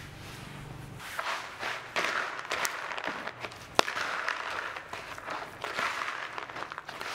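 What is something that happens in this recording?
A spoon stirs crumbly bait mix and pellets in a plastic bowl.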